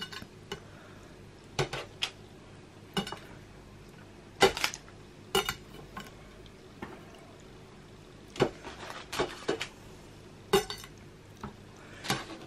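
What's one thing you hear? A knife blade taps and scrapes against a hard glass board.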